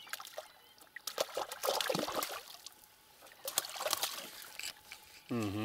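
A water bird splashes in calm water close by.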